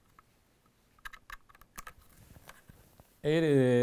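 Small clicks and knocks come from a rifle being handled.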